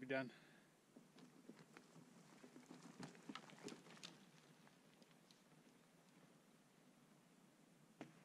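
Bicycle tyres roll over a forest trail.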